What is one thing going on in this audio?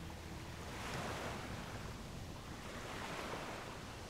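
Sea waves wash onto the shore.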